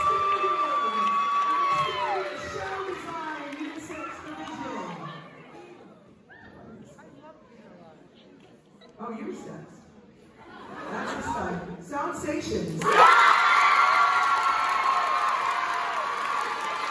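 A crowd of young women screams and cheers loudly in a large hall.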